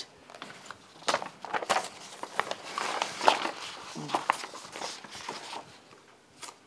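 Paper rustles and crackles as sheets are shuffled.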